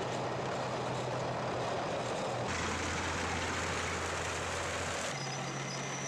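Heavy tank engines rumble and clatter on a road.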